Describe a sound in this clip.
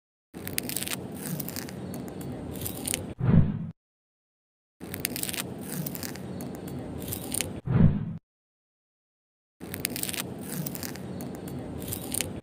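A small hand saw scrapes through a dry crust.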